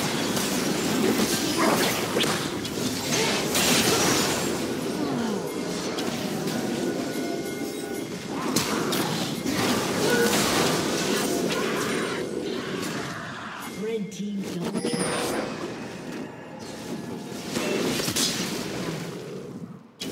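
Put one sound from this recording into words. Magic blasts and sword strikes crackle and boom in rapid bursts.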